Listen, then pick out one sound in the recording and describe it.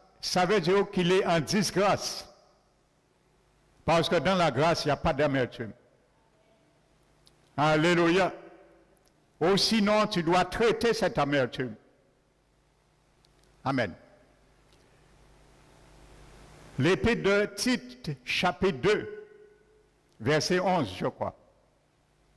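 An older man preaches with animation through a microphone in a reverberant hall, in bursts with pauses.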